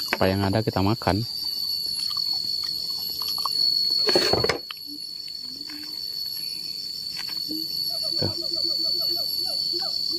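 Hands pull apart soft fruit flesh with a quiet wet tearing.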